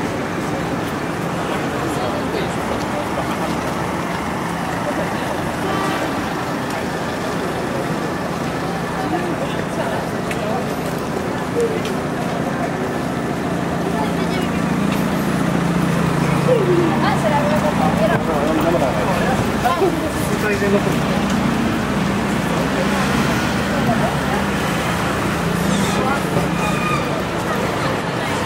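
City traffic rumbles steadily along a street outdoors.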